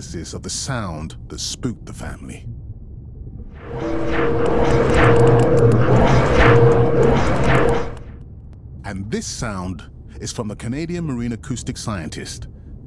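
A man speaks calmly, as if over an online call.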